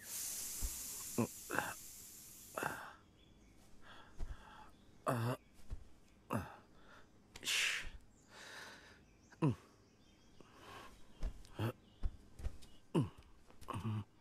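A man breathes heavily and sighs.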